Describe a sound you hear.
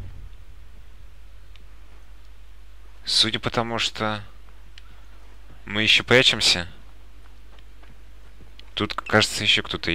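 Footsteps shuffle softly across a carpeted floor.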